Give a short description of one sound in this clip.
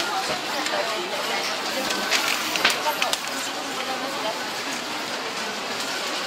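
A crowd murmurs and chatters nearby indoors.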